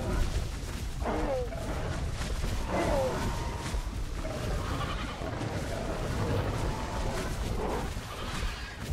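Large creatures shriek and growl in short, rising and falling cries.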